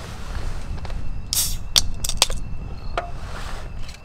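A drink can pops open with a hiss.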